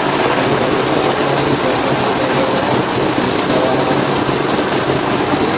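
A blender whirs loudly and steadily, grinding its contents.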